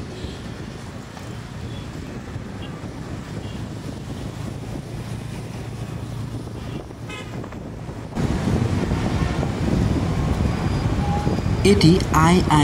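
A vehicle engine hums steadily while driving along a road.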